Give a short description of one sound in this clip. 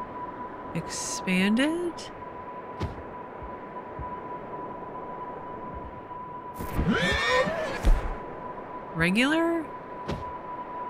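A horse whinnies nearby.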